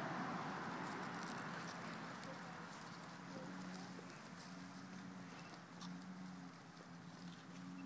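Footsteps crunch softly on bark chips.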